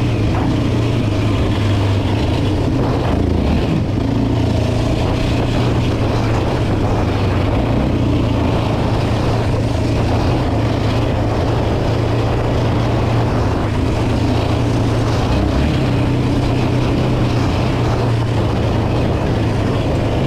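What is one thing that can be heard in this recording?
A quad bike engine drones steadily up close.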